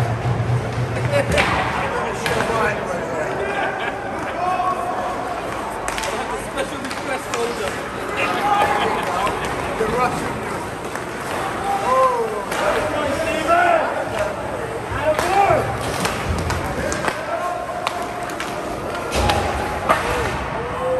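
Skates scrape and hiss across the ice in an echoing rink.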